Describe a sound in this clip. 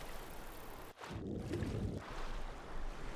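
Someone splashes into water.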